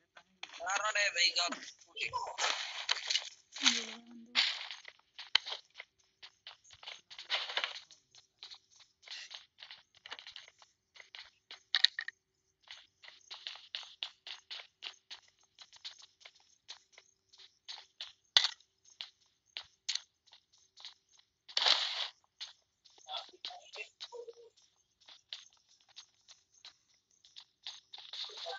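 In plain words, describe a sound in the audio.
Footsteps patter quickly across a floor.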